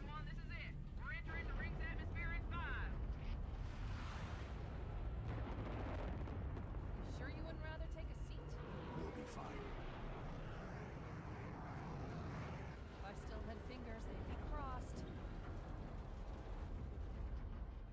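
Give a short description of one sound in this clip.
A spacecraft's engines rumble low and steady.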